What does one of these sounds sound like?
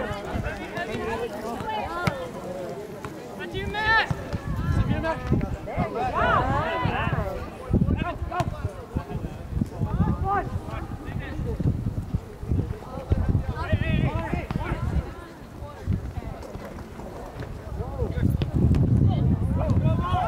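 Young men shout to each other outdoors, some distance away.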